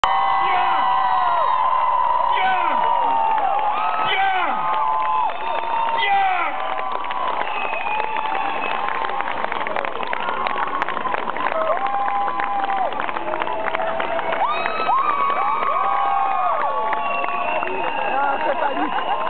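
People in a crowd whistle shrilly, again and again.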